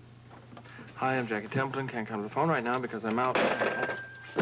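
A man speaks quietly into a telephone.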